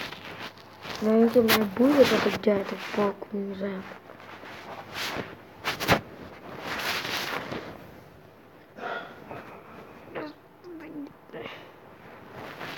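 A young boy talks close to a microphone.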